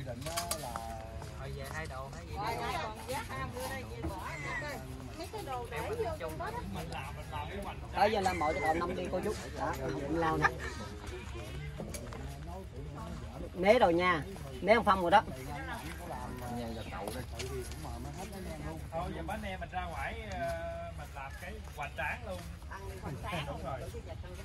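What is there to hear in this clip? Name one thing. Several adults talk and call out nearby, outdoors.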